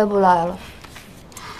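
A young woman speaks calmly nearby.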